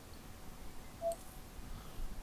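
A short electronic beep sounds as a menu purchase is confirmed.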